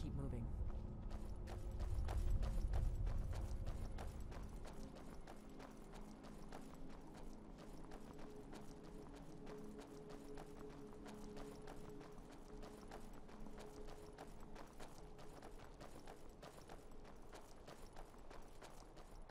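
Footsteps crunch steadily on a stony path.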